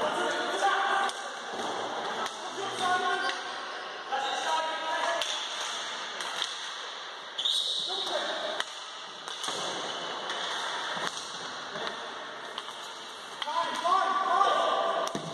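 Skates roll and scrape across an echoing hall floor.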